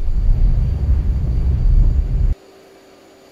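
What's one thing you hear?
A jet engine roars loudly, then cuts off abruptly.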